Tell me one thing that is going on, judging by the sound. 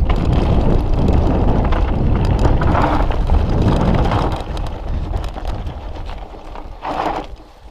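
Wind rushes loudly past a bike rider.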